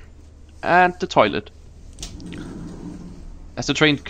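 A sliding door rolls open.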